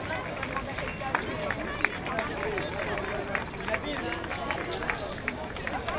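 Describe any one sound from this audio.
Spectators clap and cheer as a runner arrives.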